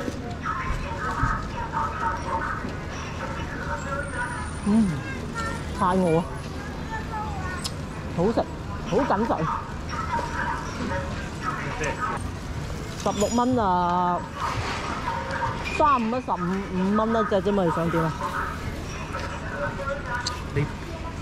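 An elderly woman talks nearby with animation.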